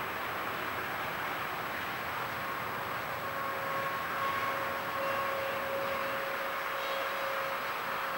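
A train approaches from a distance, rumbling steadily over the rails.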